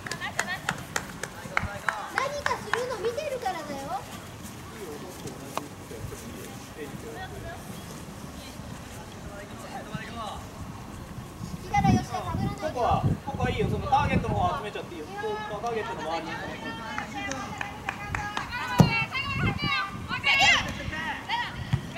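Young women shout to each other across an open outdoor pitch.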